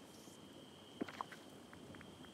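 A menu opens with a soft click.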